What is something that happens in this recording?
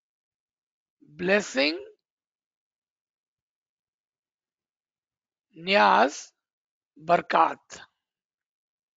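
A man speaks calmly into a microphone, heard through an online call, in short phrases with long pauses.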